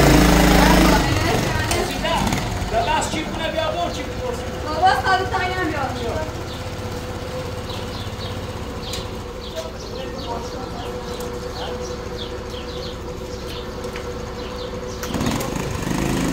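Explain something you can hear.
A motorcycle engine idles steadily nearby.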